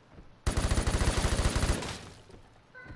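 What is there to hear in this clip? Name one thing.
A rifle fires a rapid burst of shots close by.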